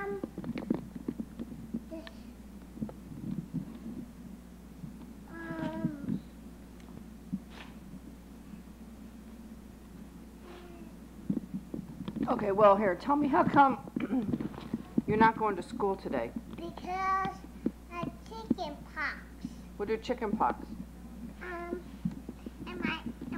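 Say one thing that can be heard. A small child talks and babbles close by.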